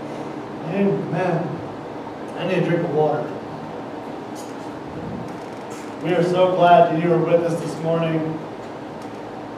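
A man speaks into a microphone, heard through loudspeakers in a room with some echo.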